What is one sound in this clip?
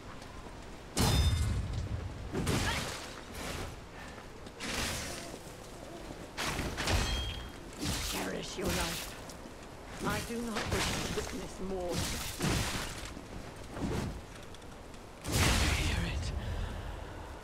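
Weapons clash and strike in a fight, with heavy thuds.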